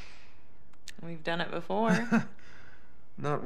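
A young woman speaks calmly and teasingly.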